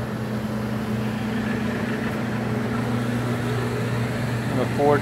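A rooftop air conditioning unit hums steadily up close.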